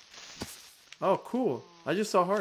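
A sheep bleats.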